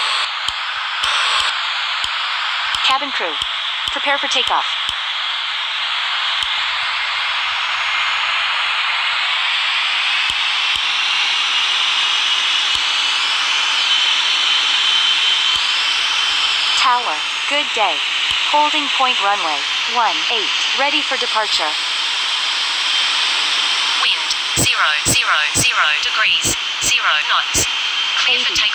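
A jet airliner's engines roar steadily.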